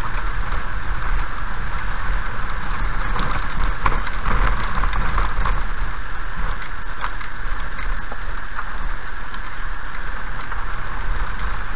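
Tyres roll over a wet, rough road.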